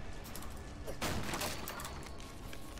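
Wooden boards smash and splinter.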